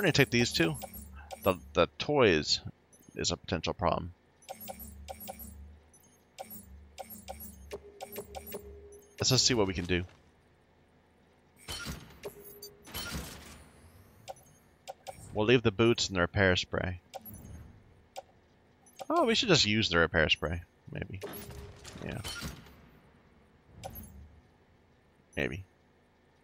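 Short electronic clicks and blips sound repeatedly.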